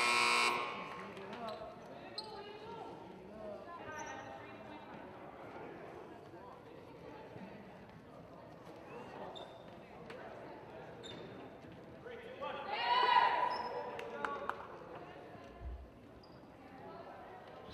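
Sneakers squeak on a hard floor in a large echoing gym.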